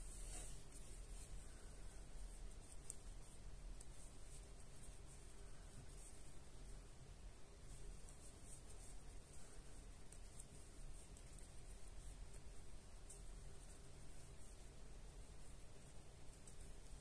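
A crochet hook softly rustles and clicks through yarn.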